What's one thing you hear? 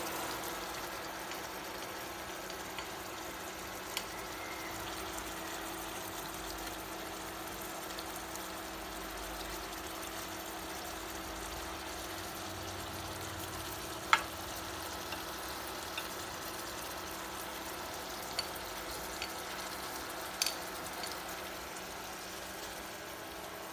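Chopsticks tap and scrape against a pan.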